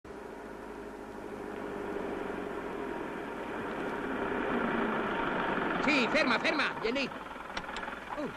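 A small truck engine rumbles as the truck drives up and slows.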